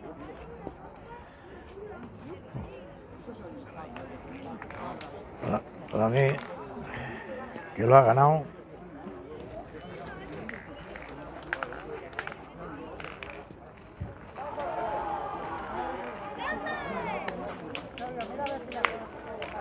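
Metal boules clack together on gravel.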